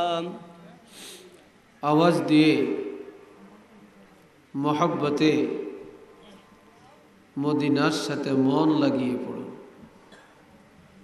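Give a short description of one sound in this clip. An elderly man speaks slowly and forcefully through a microphone and loudspeakers, in long drawn-out phrases.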